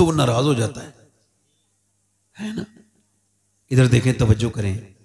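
A man speaks with animation into a microphone, in bursts with pauses.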